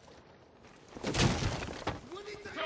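A wooden door is kicked open with a crash.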